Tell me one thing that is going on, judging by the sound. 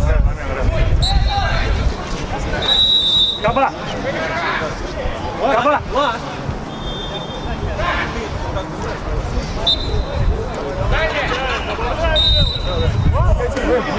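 A referee's whistle blows short, shrill blasts.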